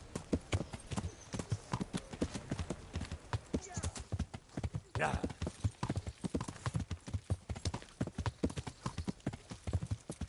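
A horse's hooves thud quickly and steadily on a dirt path.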